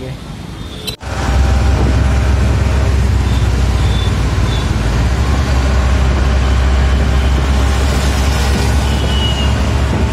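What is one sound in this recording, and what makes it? An auto rickshaw engine rumbles steadily while riding.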